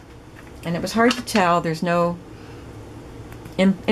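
Stiff sheets of card rustle as they are handled.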